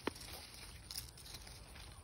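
A grape is plucked from a vine with a faint snap.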